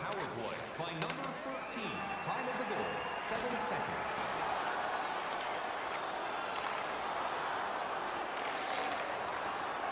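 A puck clacks off sticks.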